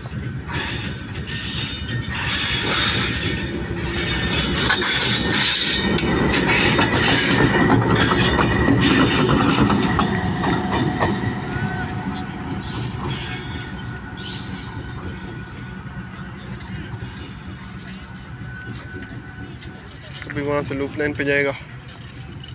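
A diesel locomotive rumbles loudly as it passes close by, then fades into the distance.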